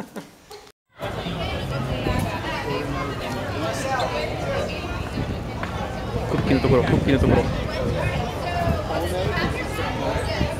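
A crowd of adults and children chatters outdoors.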